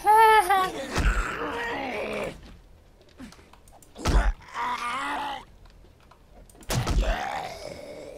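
A blunt weapon thuds heavily against a body.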